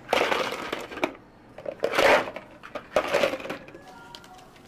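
Ice cubes clatter against a scoop and into plastic cups.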